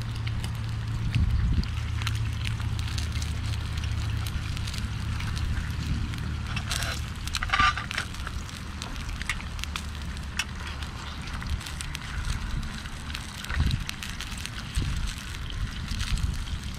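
A metal spoon scrapes and taps against a pan.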